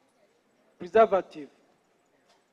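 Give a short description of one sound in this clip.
A man speaks a few words close by.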